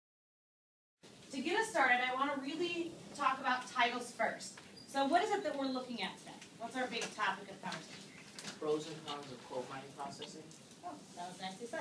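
A woman speaks clearly to a room of listeners.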